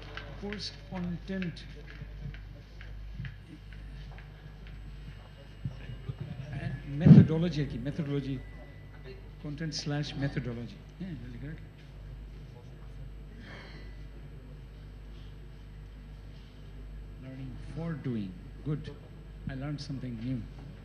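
A man speaks into a microphone through loudspeakers in an echoing hall.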